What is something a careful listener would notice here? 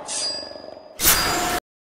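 A loud shrill screech blares suddenly.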